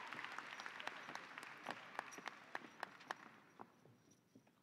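An audience claps and applauds in a large hall.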